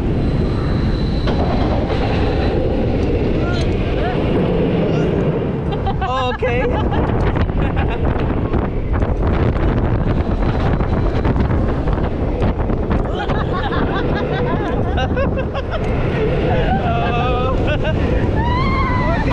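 Wind rushes hard past a speeding roller coaster.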